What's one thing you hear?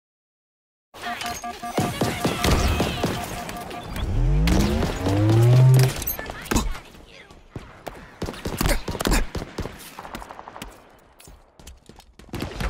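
Pistol shots crack in quick bursts.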